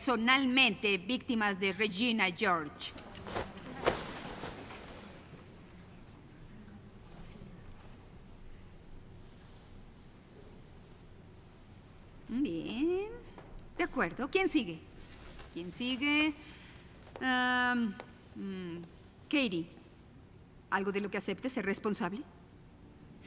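A young woman speaks with animation in a large echoing room.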